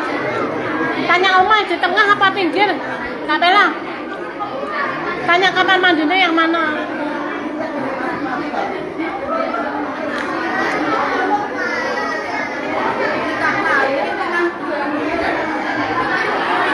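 A crowd of women and men chatter loudly close by.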